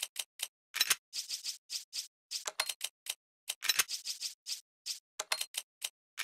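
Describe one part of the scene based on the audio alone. Short electronic menu blips tick in quick succession.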